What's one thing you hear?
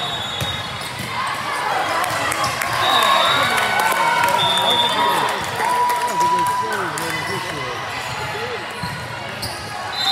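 Young women cheer and shout loudly in a large echoing gym.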